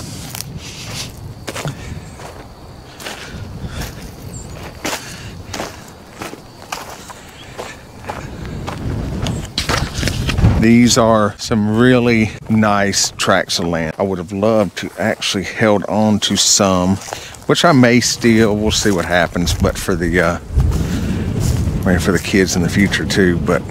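Footsteps crunch on loose dry dirt.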